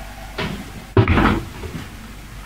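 An oven door swings shut with a thud.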